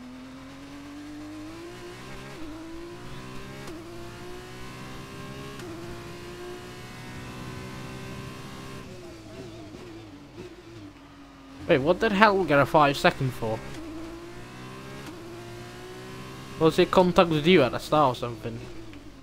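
A racing car engine revs high, rising in pitch and dropping sharply with each gear change.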